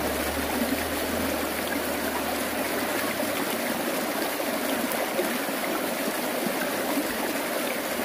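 A shallow stream trickles and splashes over stones.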